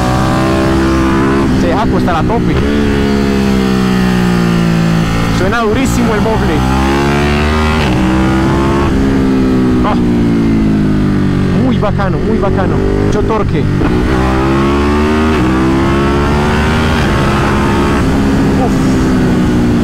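A motorcycle engine roars close by, its pitch rising and dropping again and again as it shifts through the gears.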